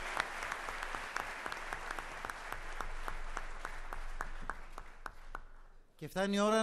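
A large crowd applauds in a big hall, then fades.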